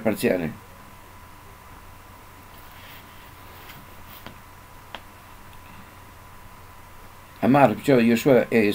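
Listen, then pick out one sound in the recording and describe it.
An elderly man speaks calmly into a microphone, heard through an online call.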